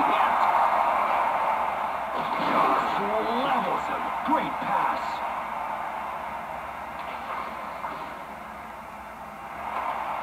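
A crowd roars steadily through a television speaker and slowly quiets.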